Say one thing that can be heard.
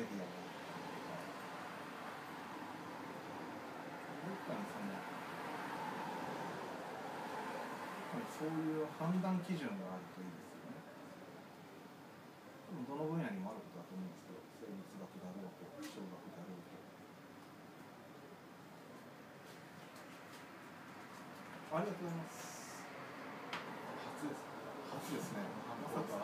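Young men talk casually with each other nearby.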